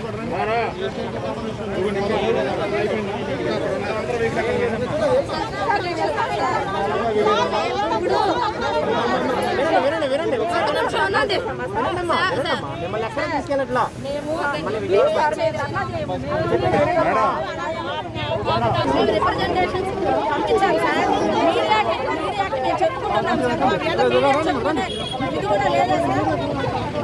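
A crowd of women talk and shout over one another close by.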